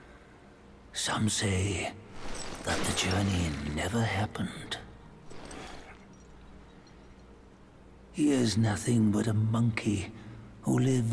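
A young man talks into a close microphone.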